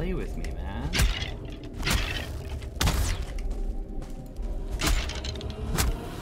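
Weapon blows land with sharp thuds in a fight.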